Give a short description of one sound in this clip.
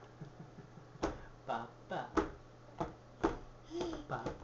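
A baby slaps a hand on a plastic high-chair tray.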